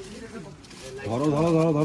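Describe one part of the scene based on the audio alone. A man speaks calmly and clearly.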